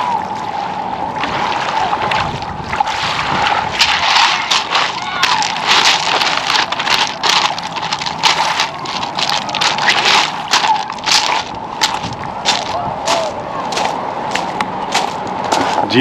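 Footsteps crunch on loose pebbles.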